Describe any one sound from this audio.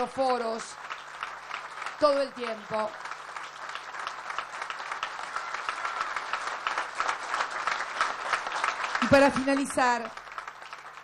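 A crowd applauds steadily in a large space.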